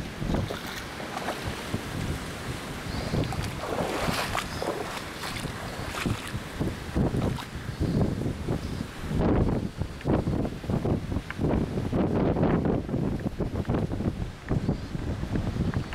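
Wind gusts roar across the microphone.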